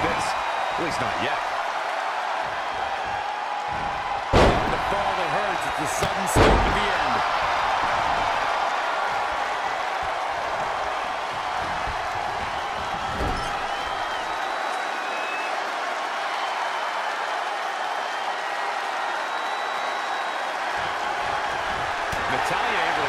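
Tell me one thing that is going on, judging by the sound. An arena crowd cheers.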